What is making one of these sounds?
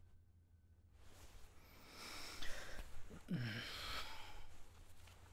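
A blanket rustles as it is pulled over a bed.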